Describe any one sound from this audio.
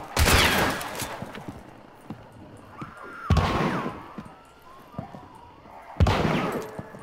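Gunshots boom loudly and echo.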